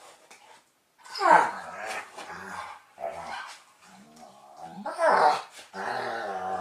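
Two dogs growl and grumble at each other playfully, close by.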